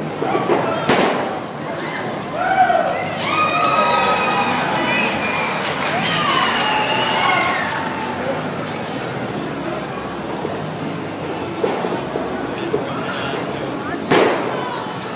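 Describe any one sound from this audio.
A wrestler's body slams onto the ring mat with a loud thud.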